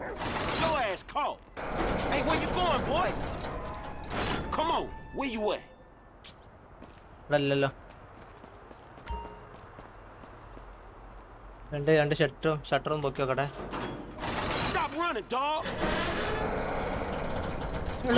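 A man tugs and bangs on a metal sliding door.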